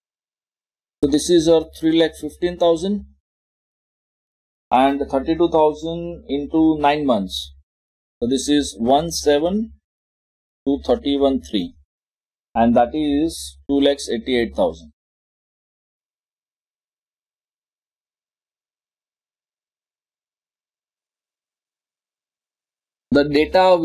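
A man explains calmly into a close microphone, pausing between phrases.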